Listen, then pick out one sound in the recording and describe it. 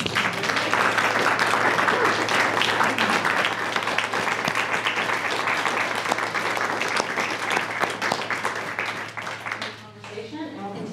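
An audience claps loudly in a room, then the clapping stops.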